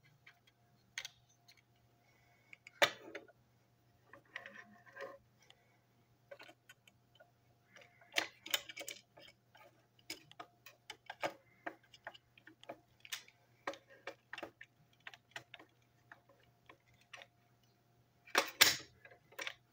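Small plastic model train parts click and tap together in someone's hands.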